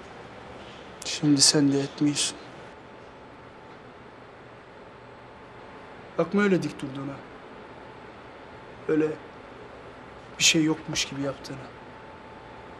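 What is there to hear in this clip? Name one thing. A young man speaks tensely in short bursts, close by.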